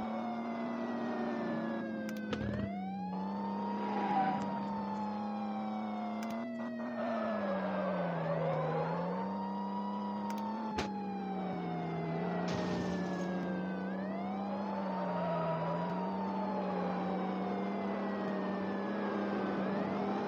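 A siren wails, rising and falling in long sweeps.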